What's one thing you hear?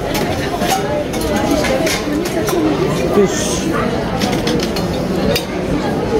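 Metal utensils clink as a man rummages through a crate.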